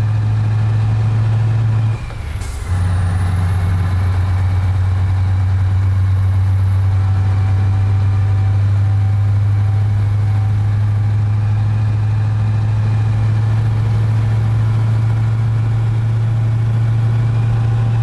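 A truck engine hums steadily at speed.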